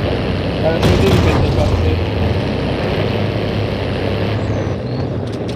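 A truck engine rumbles as it drives over rough ground.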